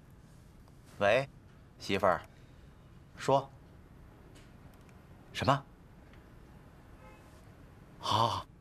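A man speaks in short, startled bursts.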